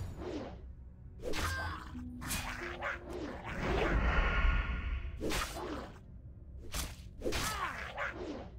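A sword swings and clashes in quick, repeated blows.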